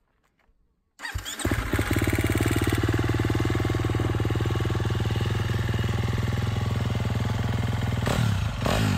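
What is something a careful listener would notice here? A dirt bike engine starts and idles loudly with a steady rumble.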